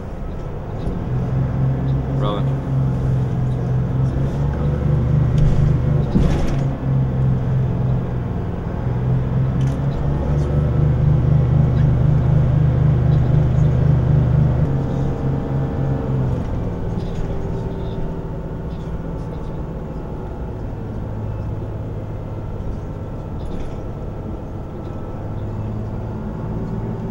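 A bus engine hums and drones steadily, rising and falling as the bus drives.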